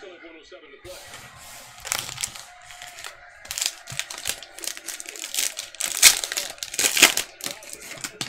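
Hands crinkle foil trading card packs.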